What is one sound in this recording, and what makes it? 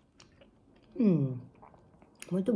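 A young woman makes a short humming sound close by.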